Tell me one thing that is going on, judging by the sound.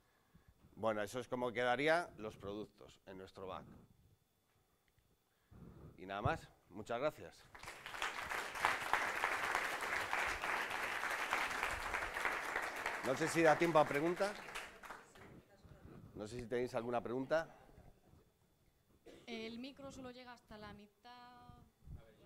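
A man speaks to an audience through a microphone.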